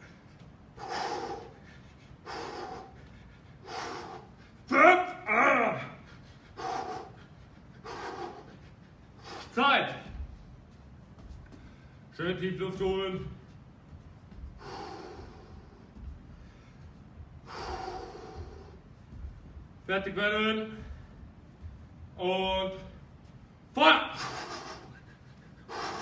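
A man breathes out sharply in short bursts while exercising.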